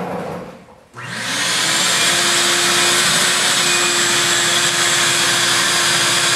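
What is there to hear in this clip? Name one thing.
A vacuum cleaner roars steadily.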